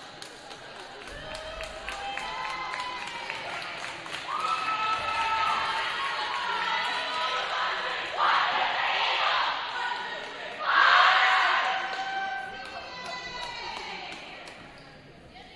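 Young women volleyball players shout and cheer together in a large echoing gym.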